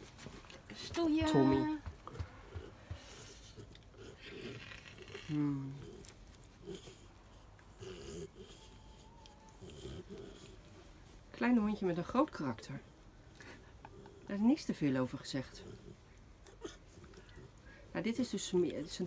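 A small dog growls and grumbles playfully, close by.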